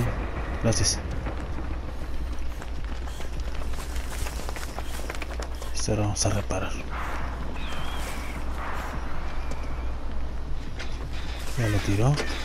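Footsteps run over grass and dry leaves.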